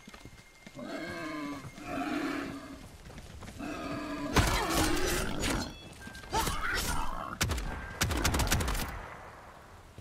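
A beast snarls and growls loudly.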